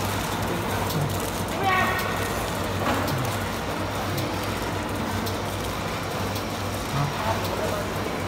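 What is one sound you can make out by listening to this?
Plastic film crinkles as a hand handles it.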